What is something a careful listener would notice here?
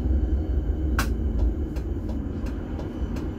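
Tram wheels click over rail joints.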